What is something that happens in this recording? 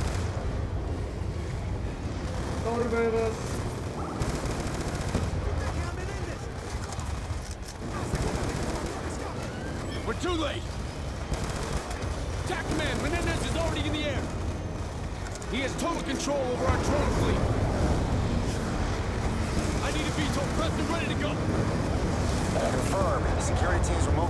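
Explosions rumble deeply and steadily.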